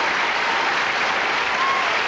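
A young woman laughs softly near a microphone.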